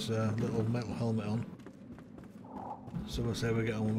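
Footsteps thud quickly on wooden steps.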